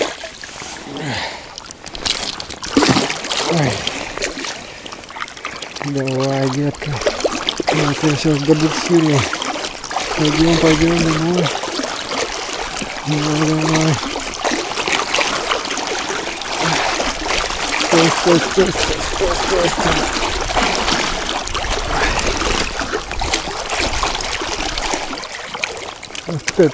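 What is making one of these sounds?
Water swishes and laps close by, outdoors.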